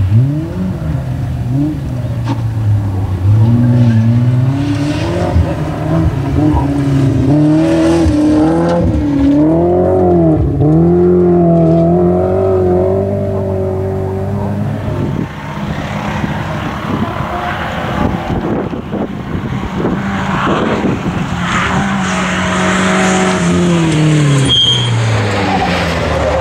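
Tyres skid and scrabble on loose gravel.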